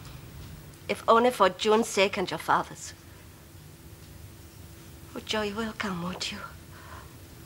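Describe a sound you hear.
A young woman speaks softly and earnestly.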